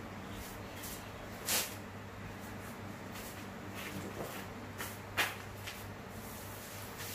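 A woven mat rustles and scrapes against the floor as it is straightened by hand.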